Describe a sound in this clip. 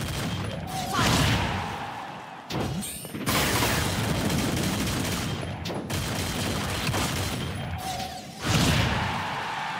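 Heavy blows land with loud booming impacts.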